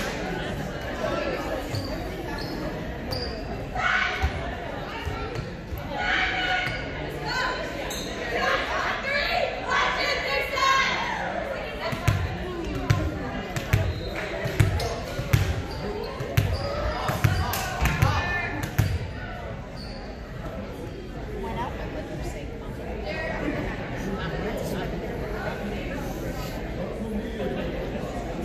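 Young girls call out and chatter around the court.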